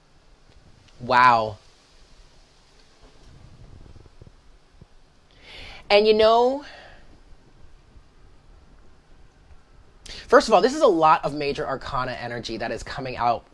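A woman speaks close by, with animation.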